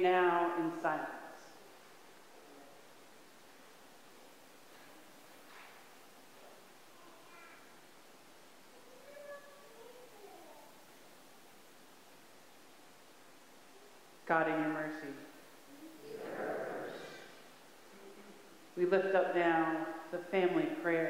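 A man sings slowly into a microphone, echoing in a large hall.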